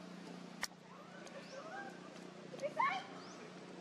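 A baby monkey suckles softly.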